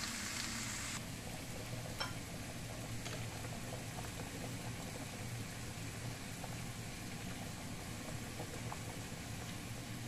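Water bubbles at a rolling boil in a pot.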